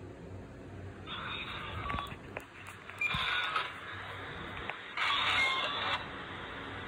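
A recording plays back through a small, tinny phone speaker.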